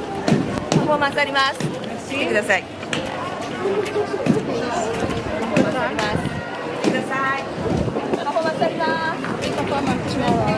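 A crowd chatters outdoors in a busy street.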